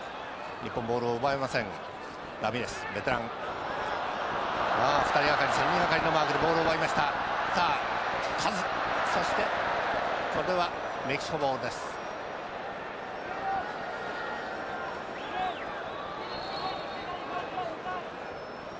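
A large stadium crowd roars and swells, then settles to a steady murmur.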